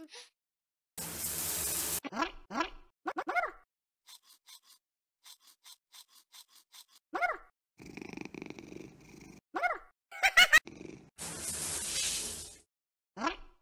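Water sprays from a shower.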